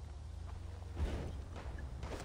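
A flame roars briefly.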